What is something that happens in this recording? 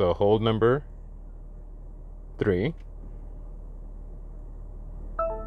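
A finger clicks a button.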